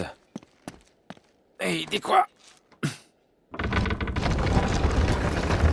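Hands scrape and grip on rock while climbing.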